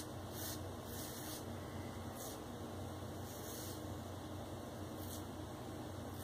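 A razor scrapes softly over a shaved scalp in short strokes.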